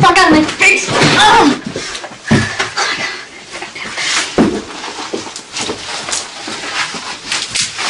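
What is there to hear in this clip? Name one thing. Bodies thump and scuffle on a floor.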